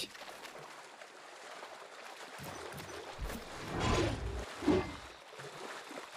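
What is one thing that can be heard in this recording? Water splashes around legs wading through a shallow stream.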